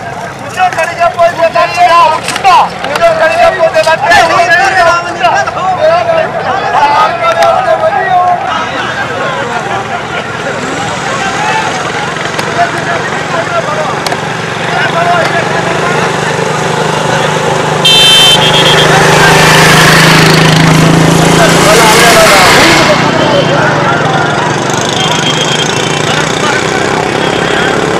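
A large crowd of men shouts and chatters outdoors.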